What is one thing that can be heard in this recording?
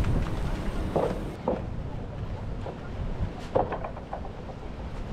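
Footsteps thud on a wooden gangway.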